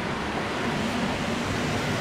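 A motorbike engine drones past.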